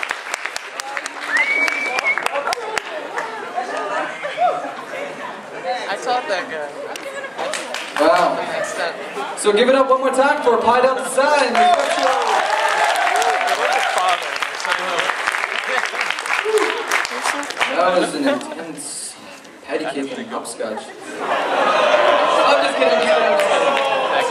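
An audience murmurs and rustles.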